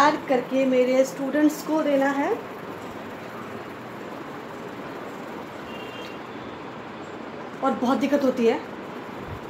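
A young woman speaks close by in short, drawn-out phrases.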